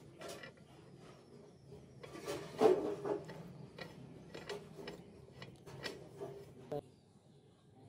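Small metal parts click and clink as a bolt is screwed in by hand.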